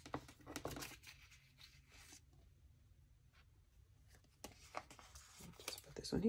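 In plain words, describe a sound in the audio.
Paper sheets rustle softly as hands handle them.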